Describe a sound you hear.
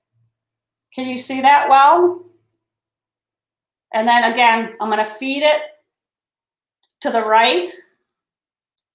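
A woman talks calmly and close to a microphone, in short phrases with pauses.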